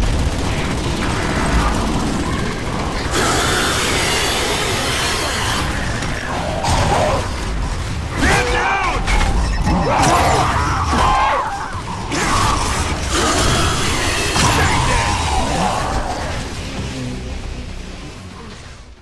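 Loud gunfire of a fast battle crackles and roars.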